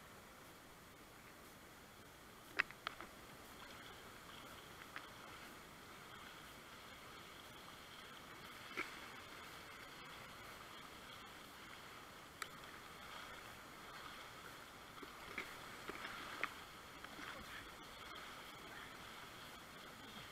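A paddle blade splashes into the water.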